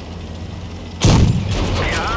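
A tank cannon fires with a loud boom that rings out.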